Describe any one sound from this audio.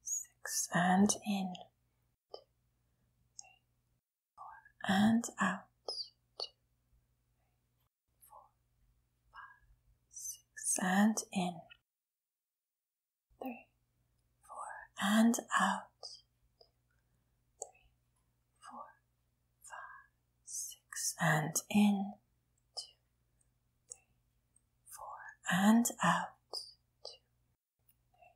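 A young woman speaks calmly and softly into a close microphone, in short phrases with pauses.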